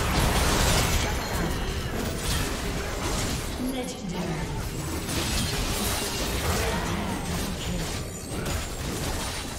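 Game spell effects crackle and burst during a frantic battle.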